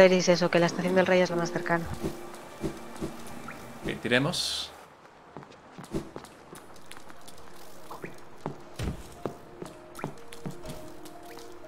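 Light footsteps tap on a stone floor.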